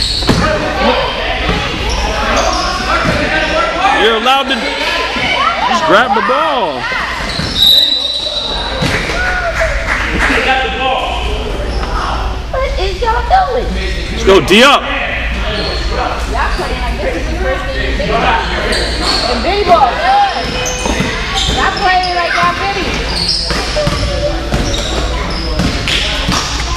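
Sneakers squeak sharply on a wooden gym floor.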